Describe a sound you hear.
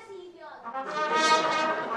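A brass band starts to play.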